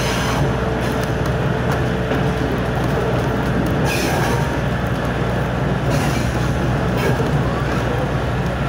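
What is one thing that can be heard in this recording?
A train carriage rumbles and rattles steadily along the track, heard up close.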